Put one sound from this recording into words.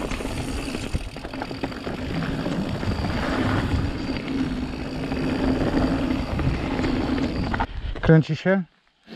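Bike tyres rumble and crunch over a rough dirt trail.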